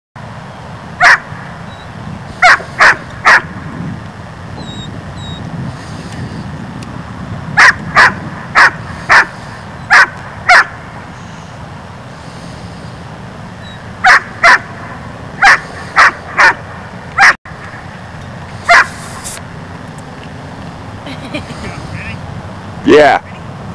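A dog barks loudly and repeatedly nearby, outdoors.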